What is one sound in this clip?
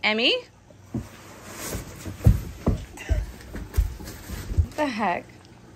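Soft thumps sound as a child rolls on a carpeted floor.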